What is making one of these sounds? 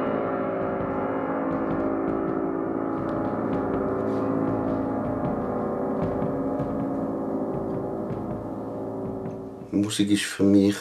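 A cello plays a slow, low melody up close.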